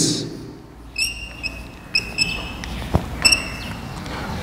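Chalk squeaks and taps against a board.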